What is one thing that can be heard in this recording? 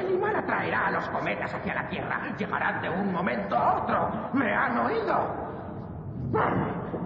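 A man speaks.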